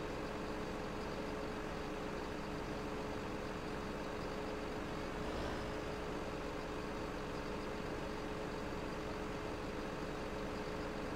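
A heavy diesel engine hums steadily.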